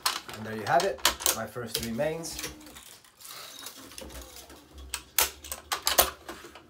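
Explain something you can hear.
Racket strings click and rattle as a man handles them.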